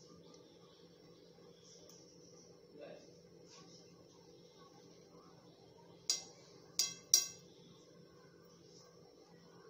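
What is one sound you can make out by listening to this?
Hot oil sizzles softly in a pan.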